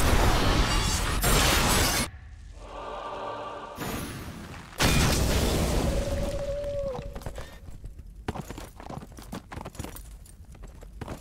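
Magic spells blast and crackle in loud, noisy bursts.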